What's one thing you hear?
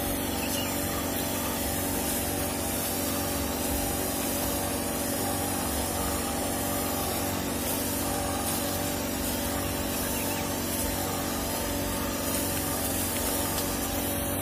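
A sprayer nozzle hisses steadily as it sprays water onto the ground.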